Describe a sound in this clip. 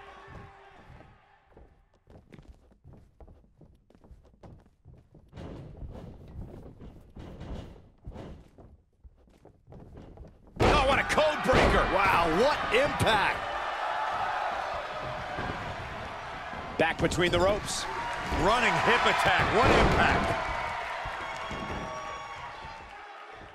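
Bodies thud and slam onto a wrestling mat.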